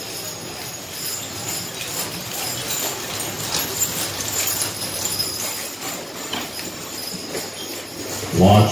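Horse hooves thud softly on sand.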